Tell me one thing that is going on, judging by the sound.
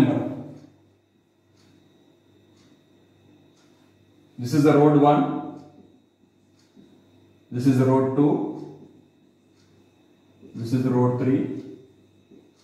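A man speaks calmly and clearly, as if teaching, in short phrases.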